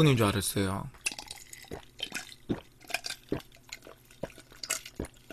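A young man gulps down a drink.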